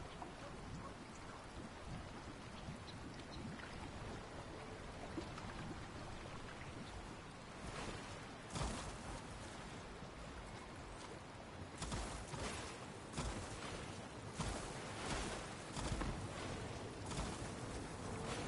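Water splashes as a figure wades and swims.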